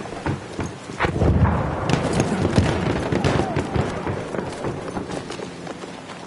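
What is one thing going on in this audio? An explosion booms nearby and rumbles away.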